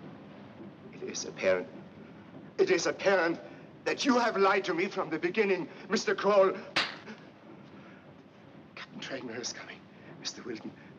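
An older man speaks urgently and forcefully, close by.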